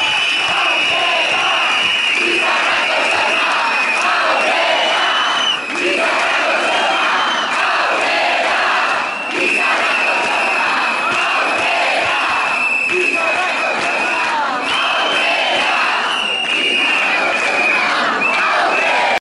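A large outdoor crowd of young people sings and cheers loudly.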